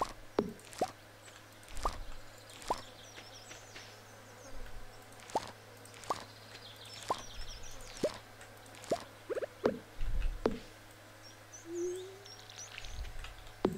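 A man talks quietly into a headset microphone.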